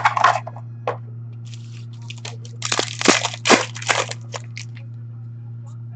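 Cards rustle and tap as they are handled.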